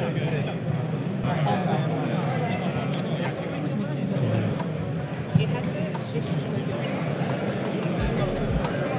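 A crowd of people chatters steadily nearby.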